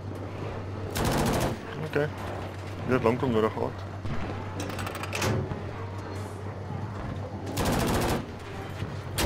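A heavy gun fires with loud booms.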